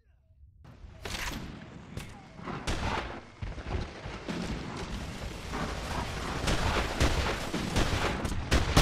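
Rapid gunfire cracks and echoes.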